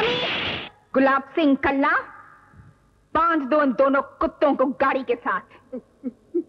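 A woman speaks firmly and close by.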